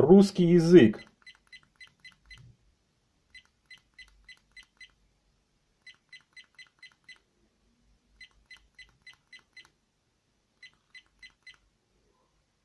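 A small electronic device gives quick, faint beeps in short bursts as its buttons are pressed.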